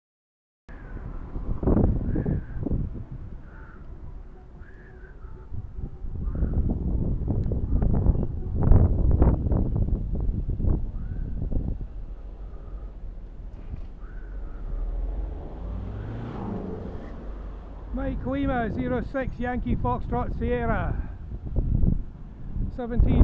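Wind buffets a microphone on a moving bicycle.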